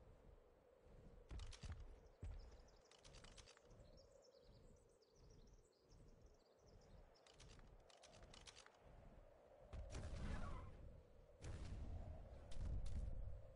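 Large wings beat in a steady rhythm.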